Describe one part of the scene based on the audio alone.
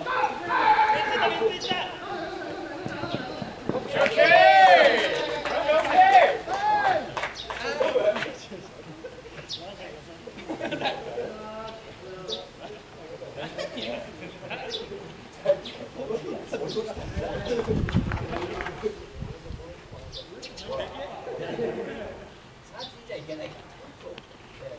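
Young men shout and chant loudly across an open field.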